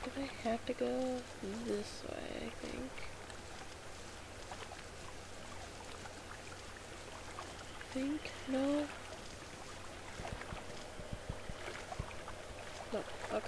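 Footsteps patter along on soft ground.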